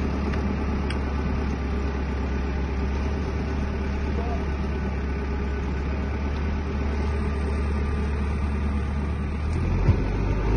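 A backhoe loader's diesel engine rumbles steadily nearby.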